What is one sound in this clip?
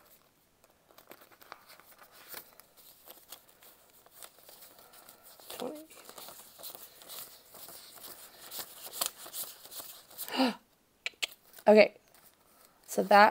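Paper banknotes rustle and crinkle as they are counted.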